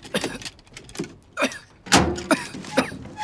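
A metal lock rattles and clanks.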